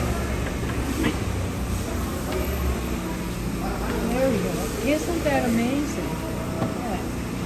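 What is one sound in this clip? Wooden boards knock as a bench is folded over.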